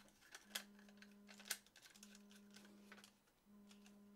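A screwdriver turns a screw with light scraping.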